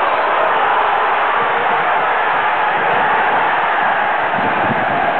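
A stadium crowd roars steadily in the distance.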